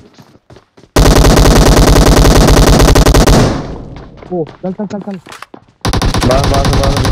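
Rapid automatic gunfire rattles loudly.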